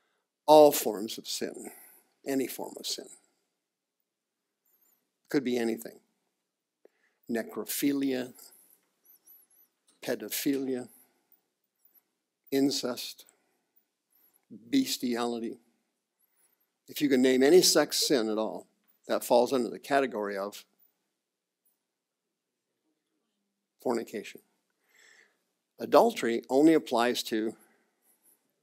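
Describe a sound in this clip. A middle-aged man speaks with animation, pausing often.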